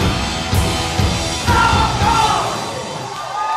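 A rock band plays loudly in a large echoing hall.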